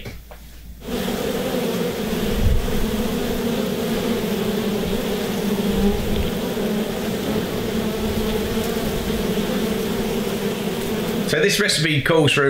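Bees buzz steadily up close.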